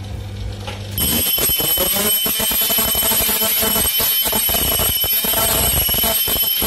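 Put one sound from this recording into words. A sewing machine motor hums and clatters rapidly.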